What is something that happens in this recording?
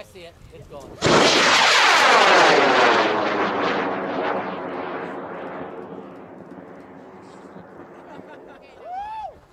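A rocket launches with a sudden roar that slowly fades into the distance.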